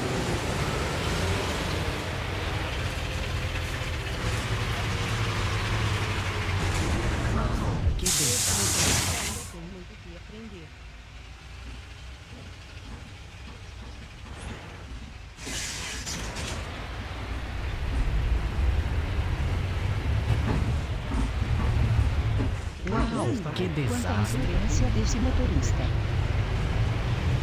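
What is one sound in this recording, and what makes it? A bus engine rumbles steadily, revving up and settling down.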